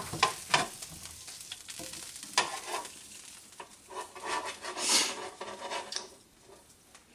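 Sausages sizzle in a hot pan.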